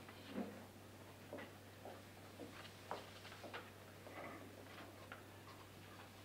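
Footsteps walk across a hard floor indoors.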